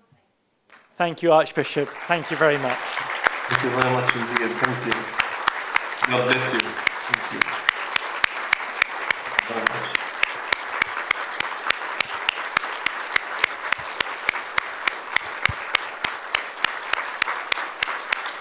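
A large crowd applauds steadily.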